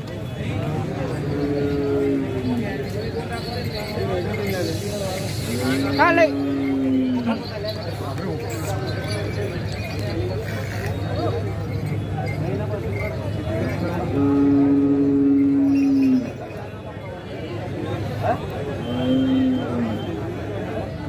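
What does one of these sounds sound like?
Bullocks low loudly nearby.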